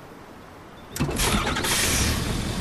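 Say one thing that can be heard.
A heavy truck engine rumbles loudly.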